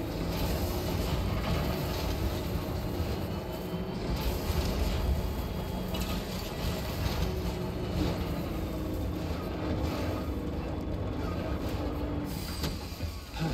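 An off-road truck engine rumbles and strains uphill.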